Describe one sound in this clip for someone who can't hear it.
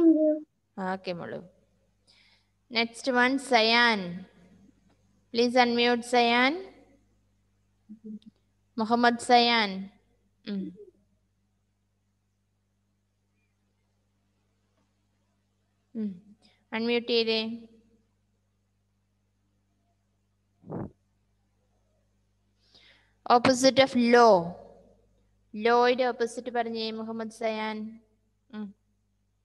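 A young woman speaks in short, lively bursts over an online call.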